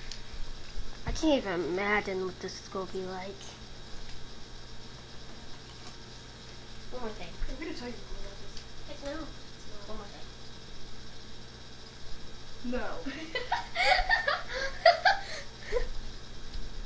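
A teenage boy talks casually close by.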